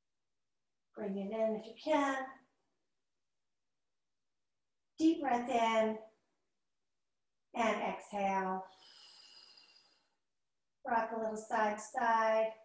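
A woman speaks calmly and close by, giving instructions in short phrases with pauses.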